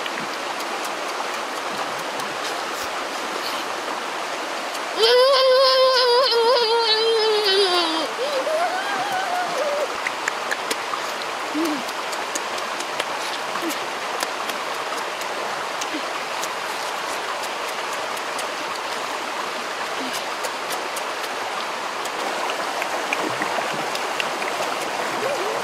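A boy chews and crunches on food close by.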